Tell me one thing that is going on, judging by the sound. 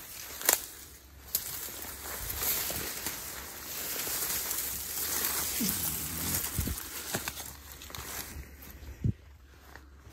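Twigs snap underfoot.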